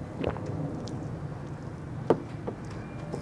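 A glass is set down on a table with a knock.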